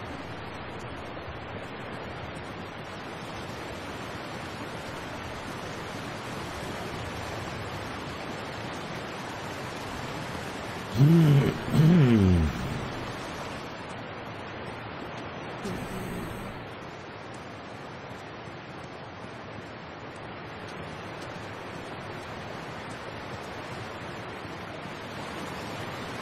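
Water rushes and churns steadily.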